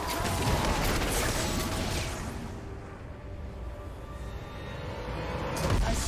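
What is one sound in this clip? Spell blasts and weapon clashes from a video game crackle in a busy jumble.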